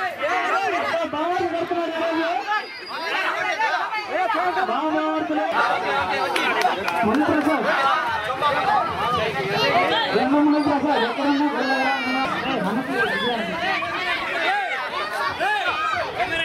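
A crowd of women and men chatter and cheer loudly outdoors.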